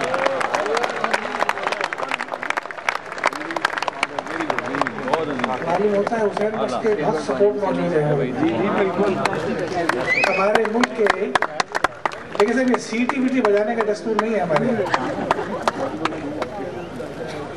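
An elderly man recites into a microphone, heard over a loudspeaker in a hall.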